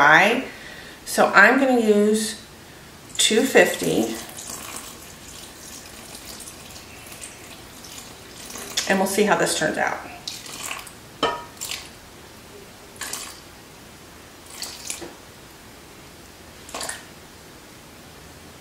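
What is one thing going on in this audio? Water pours into a bowl.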